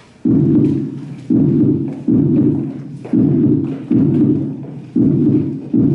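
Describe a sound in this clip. Dancers' shoes shuffle and tap on a wooden floor.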